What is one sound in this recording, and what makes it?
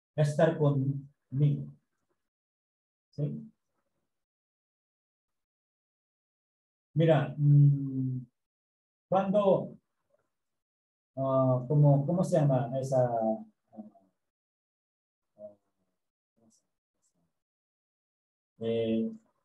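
A middle-aged man speaks calmly in bursts over an online call.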